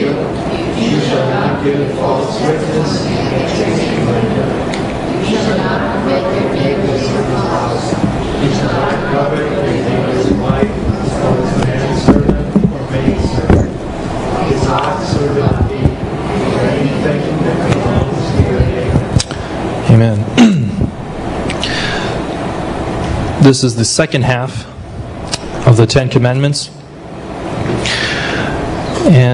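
A young man speaks steadily into a microphone over a loudspeaker, in a room with some echo.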